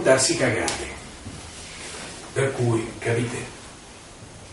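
A middle-aged man speaks with animation in a small room.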